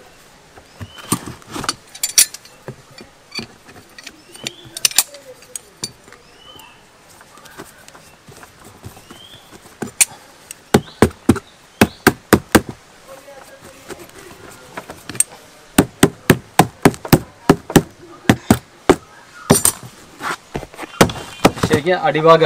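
Metal snips cut through a rubber tyre with sharp clicks.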